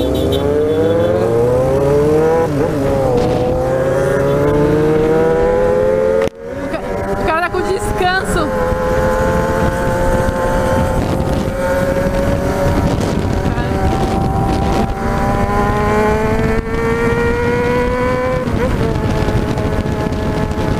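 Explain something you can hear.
Wind rushes past loudly and steadily.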